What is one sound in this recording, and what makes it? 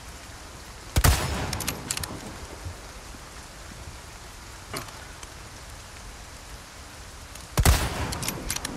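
A rifle fires a loud shot that echoes away.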